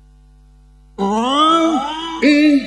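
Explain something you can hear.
An elderly man chants in a loud, melodic voice through a microphone and loudspeakers.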